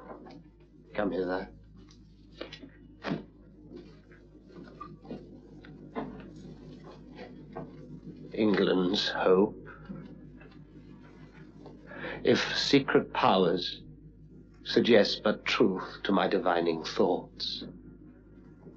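A man speaks slowly and intensely, with long pauses.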